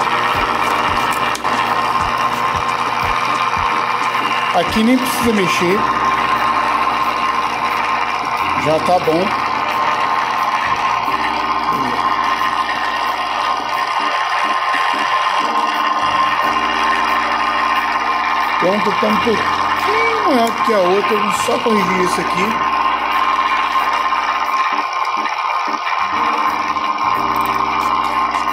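A sharpening wheel whirs steadily.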